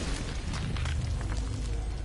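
A kick lands with a heavy thud.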